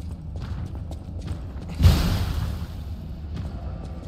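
Water splashes as footsteps wade through it.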